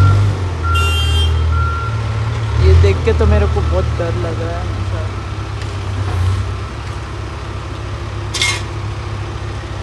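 A diesel backhoe engine rumbles steadily nearby.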